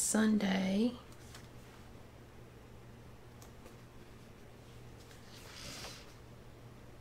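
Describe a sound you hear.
Paper rustles softly as a sheet is handled.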